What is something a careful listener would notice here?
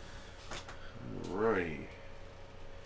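A man makes a short sliding vocal sound nearby.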